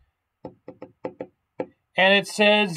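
Keys click on a laptop keyboard.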